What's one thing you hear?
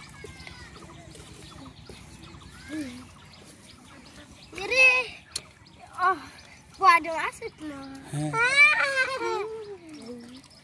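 Hands scoop and squelch through wet mud.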